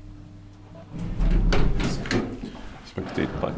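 Elevator doors slide open with a rumble.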